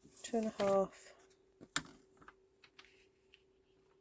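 A stiff card taps and slides against a plastic paper trimmer.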